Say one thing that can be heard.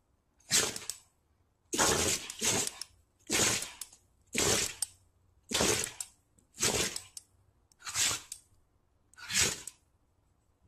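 A dog sneezes again and again.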